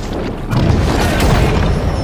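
An energy blast bursts with a whooshing roar.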